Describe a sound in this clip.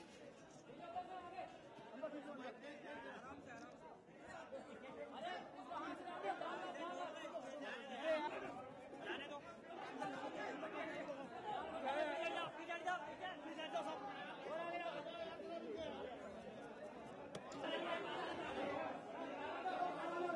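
A crowd of men talks and calls out close by.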